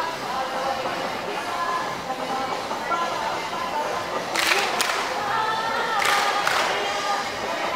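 Shoes shuffle and scuff on a hard court.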